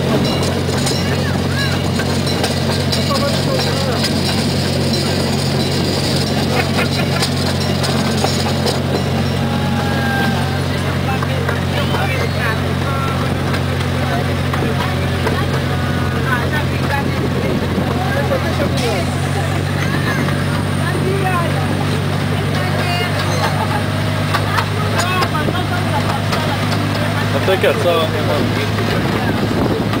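A miniature park train's engine drones steadily as it pulls along.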